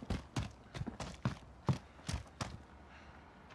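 A rifle fires a rapid series of loud shots.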